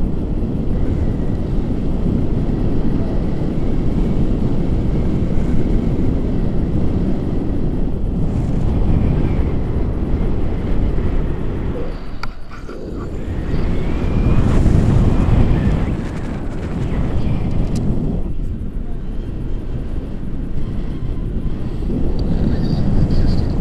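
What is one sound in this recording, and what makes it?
A man talks with animation over the wind.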